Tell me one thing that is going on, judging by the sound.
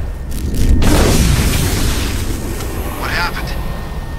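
An explosion bursts with crackling sparks.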